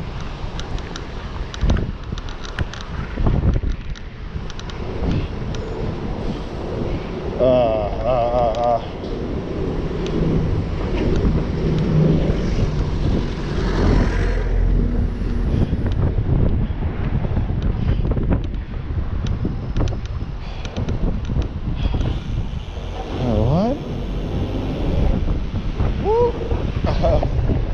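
Wind rumbles and buffets steadily while riding along a road.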